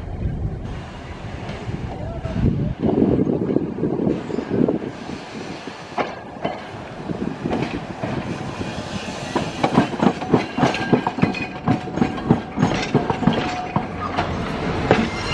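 A tram rumbles along the tracks, growing louder.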